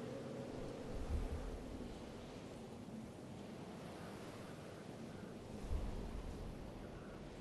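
Wind rushes steadily past during a fast fall.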